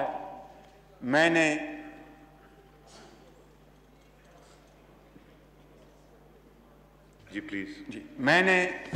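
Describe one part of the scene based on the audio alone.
A middle-aged man speaks loudly and slowly through a microphone, pausing between phrases.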